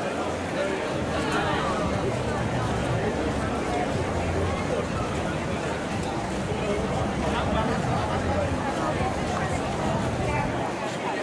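Young people chatter and call out at a distance.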